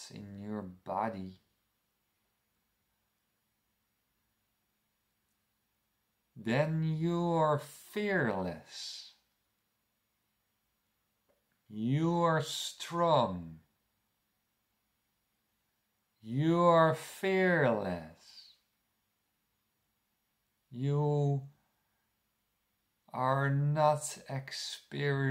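A man talks calmly and close to a microphone, in short bursts with pauses.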